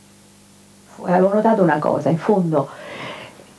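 A middle-aged woman speaks calmly, close to a microphone.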